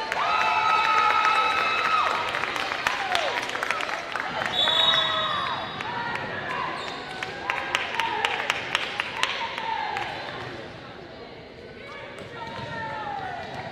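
Young women call out to one another in a large echoing hall.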